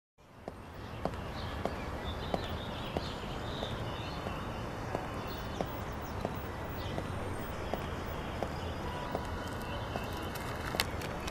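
Footsteps tread steadily on pavement.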